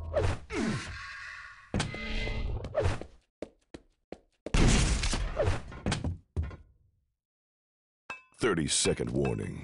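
Video game weapons fire and explode in sharp bursts.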